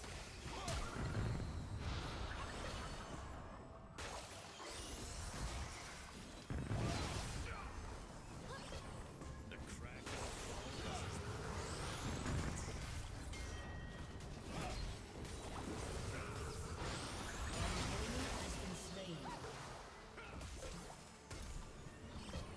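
Game characters clash with hits and strikes.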